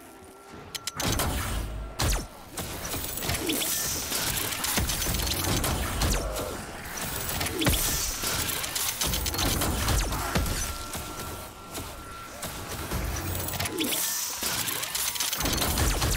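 A powerful energy weapon fires in loud, roaring blasts.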